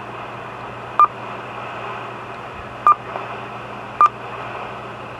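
A radio beeps short, high tones as its buttons are pressed.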